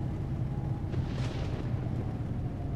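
Windscreen wipers swish across wet glass.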